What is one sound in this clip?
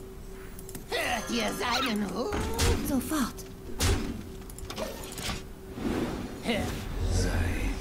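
A game chimes and whooshes as a card is played.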